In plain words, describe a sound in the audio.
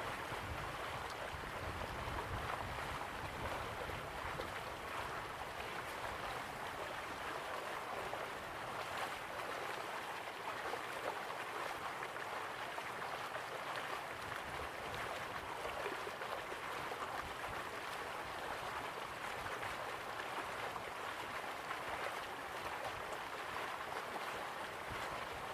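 A stream rushes over rocks.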